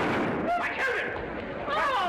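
An elderly man exclaims in surprise.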